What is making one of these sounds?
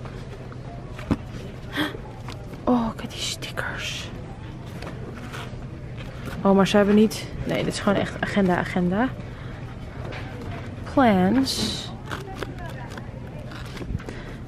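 Paper pages rustle and flutter as they are flipped.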